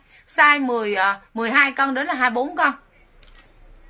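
A young woman speaks quickly and with animation close by.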